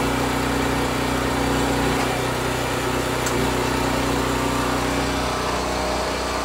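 An electric hoist motor whirs steadily.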